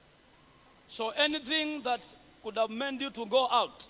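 A man preaches loudly through a microphone in a large echoing hall.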